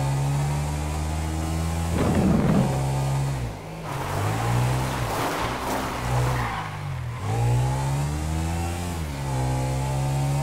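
A motorcycle engine hums and revs up and down.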